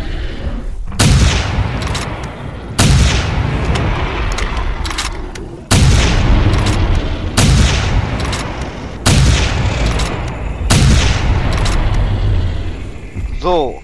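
A heavy gun fires loud booming shots that echo.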